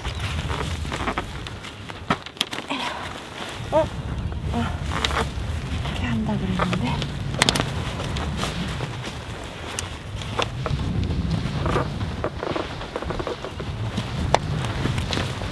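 Tent fabric rustles as it is handled.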